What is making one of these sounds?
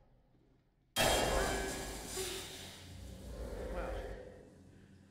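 A young man exclaims loudly.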